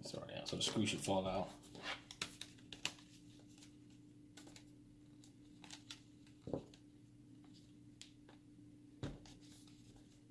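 Plastic laptop parts knock and click on a cutting mat.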